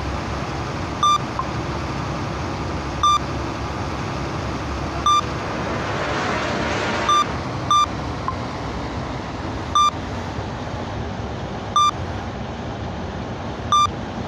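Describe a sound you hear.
A warning alarm beeps once every two seconds.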